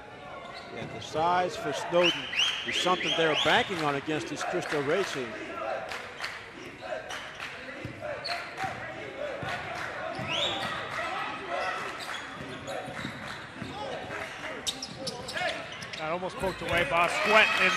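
Spectators cheer and shout in an echoing gym.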